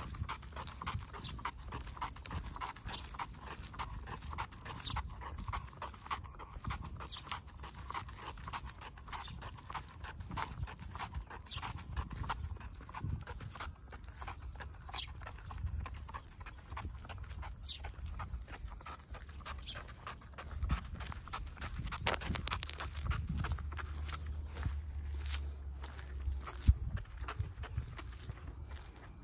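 A small dog's booted paws patter on wet pavement.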